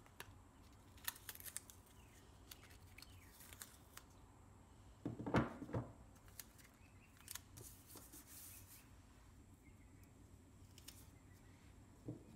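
Tape peels and crinkles.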